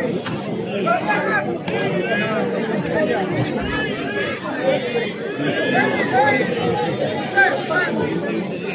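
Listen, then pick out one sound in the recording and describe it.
Men and boys shout and whistle excitedly nearby.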